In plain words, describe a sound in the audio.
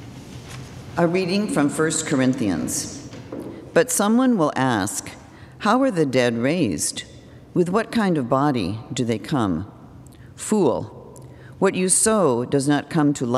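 An elderly woman reads aloud calmly into a microphone in an echoing hall.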